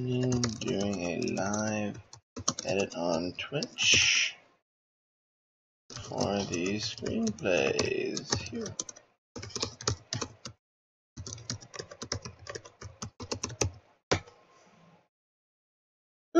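Keys clatter on a keyboard.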